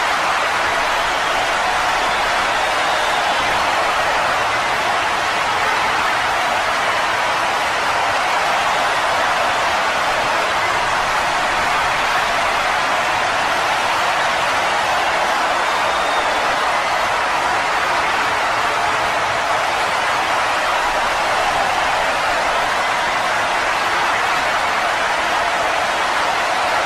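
A large crowd cheers steadily in an echoing arena.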